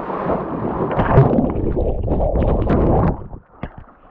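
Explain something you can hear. A man plunges into the sea with a loud splash.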